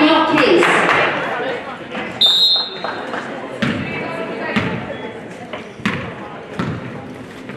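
Spectators murmur and chatter in a large echoing hall.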